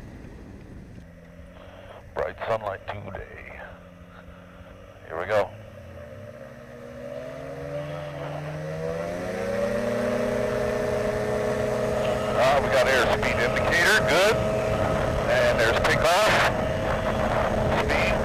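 A small aircraft engine idles and then revs up to a loud, steady drone.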